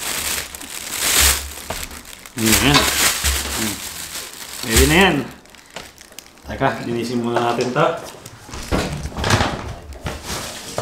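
A plastic bag crinkles and rustles as it is handled.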